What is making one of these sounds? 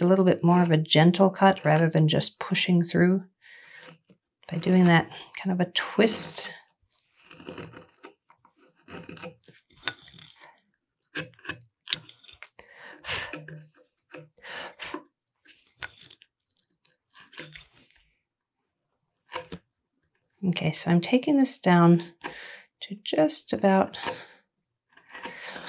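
A chisel scrapes and cuts into wood.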